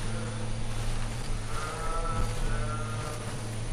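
Leaves rustle as someone pushes through a bush.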